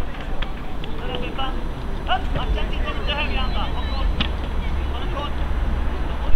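Football players shout to each other across an open field in the distance.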